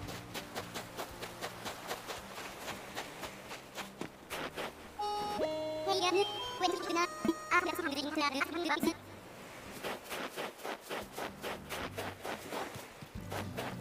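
Quick footsteps patter across the ground.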